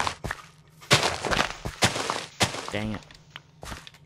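A shovel digs into dirt with gritty crunches.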